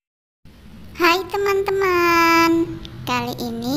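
A young girl talks cheerfully close by.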